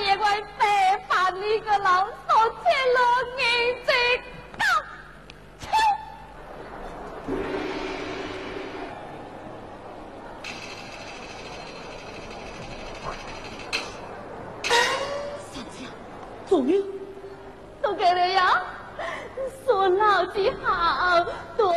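A woman sings in a high, wavering voice through a stage microphone.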